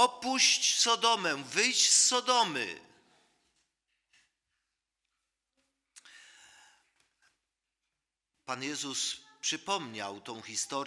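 A man preaches with emotion into a microphone in an echoing hall.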